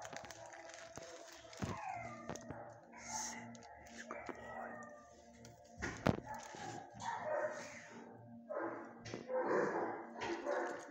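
A wire fence rattles softly as a dog nudges it.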